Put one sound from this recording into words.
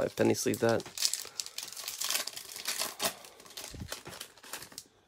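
A foil wrapper crinkles as a pack is torn open.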